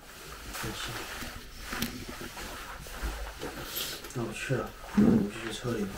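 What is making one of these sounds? A bag rustles as it is handled.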